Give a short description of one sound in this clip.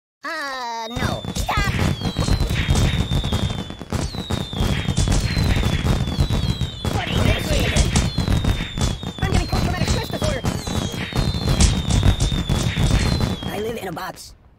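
Fireworks crackle and pop.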